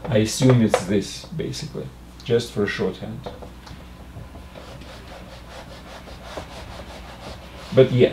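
An elderly man speaks calmly and explains, close by.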